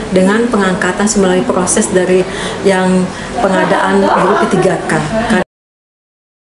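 A middle-aged woman speaks calmly and steadily, close to a microphone.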